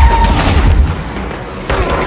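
A pistol fires in bursts.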